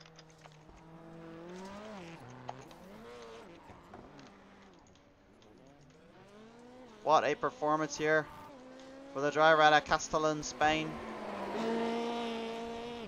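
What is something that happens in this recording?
A rally car engine revs up and down as the car shifts gears.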